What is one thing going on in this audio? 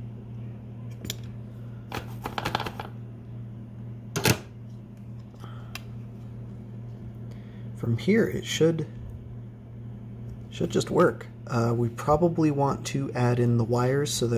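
A circuit board clicks and taps as hands handle it.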